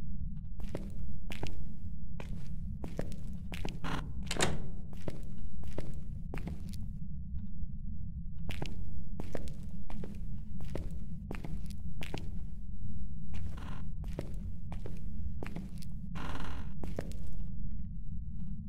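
Footsteps thud slowly and evenly on a hard floor.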